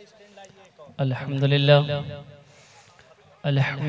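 A man speaks loudly into a microphone over loudspeakers, with reverberation.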